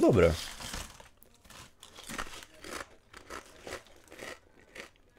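A young man crunches chips while chewing.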